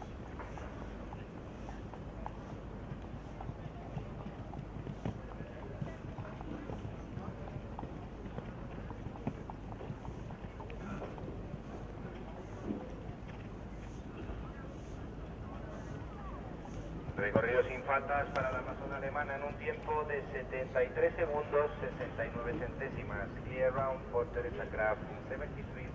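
A horse's hooves thud on soft sand at a canter.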